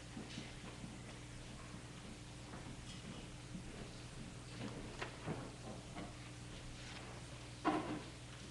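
Footsteps shuffle softly across a wooden floor in a large echoing room.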